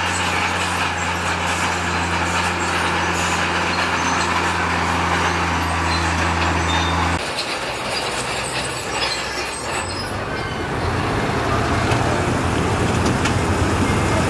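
A heavy truck engine rumbles with a deep, steady drone.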